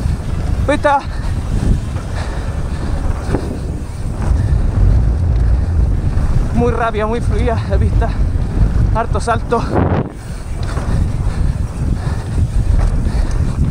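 Wind rumbles loudly past a fast-moving rider.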